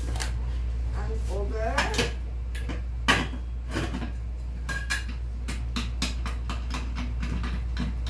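A metal lid clatters onto a pot.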